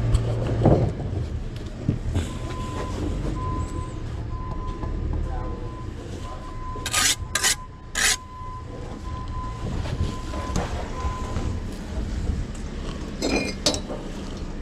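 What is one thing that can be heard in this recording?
A steel trowel scrapes and clinks against bricks and mortar.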